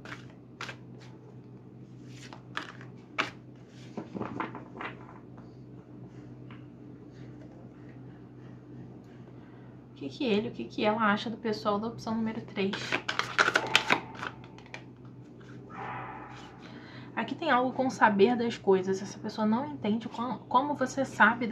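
Cards are shuffled by hand, with light flicks and taps.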